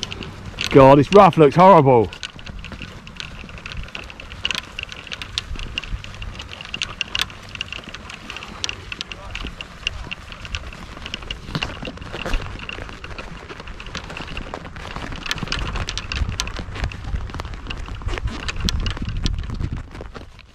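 Golf clubs rattle and clink in a bag on a moving trolley.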